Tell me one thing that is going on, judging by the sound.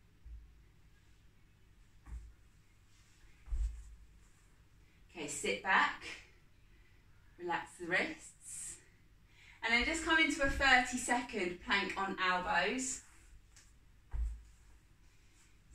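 Knees and hands shift softly on an exercise mat.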